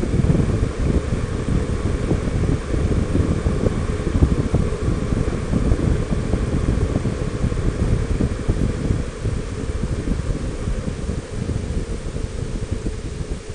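Tyres hum on rough asphalt.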